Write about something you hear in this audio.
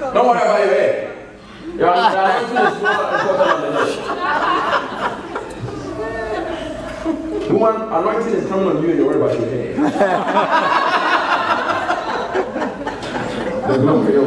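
A crowd murmurs and calls out in a large room.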